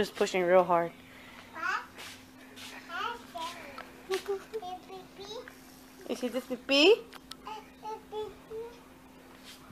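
A toddler girl babbles and chatters close by.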